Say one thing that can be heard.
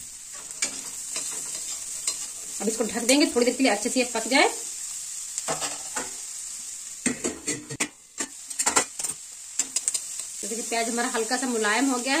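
A metal spatula scrapes and stirs food in a metal wok.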